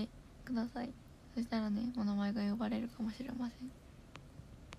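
A young woman speaks close to a microphone in a soft, lively voice.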